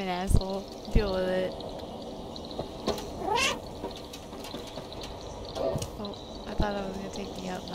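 A cat meows several times.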